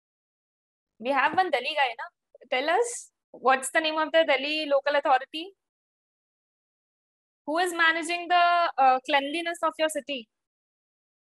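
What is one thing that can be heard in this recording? A young woman speaks calmly into a close microphone, heard as through an online call.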